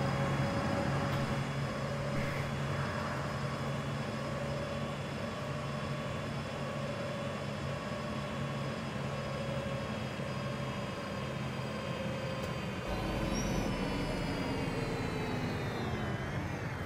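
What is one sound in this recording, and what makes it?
A diesel city bus engine drones while driving.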